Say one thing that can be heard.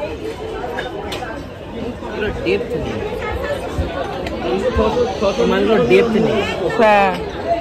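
Men and women chatter in a busy crowd nearby.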